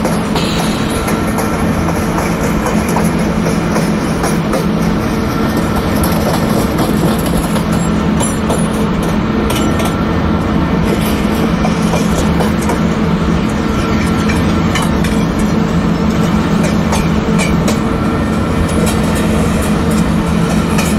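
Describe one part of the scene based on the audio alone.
An electric locomotive hums steadily as it runs along the track.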